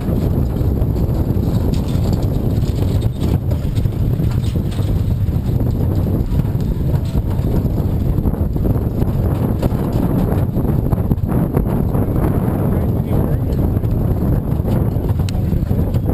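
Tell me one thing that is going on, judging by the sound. Horse hooves pound rapidly on soft dirt.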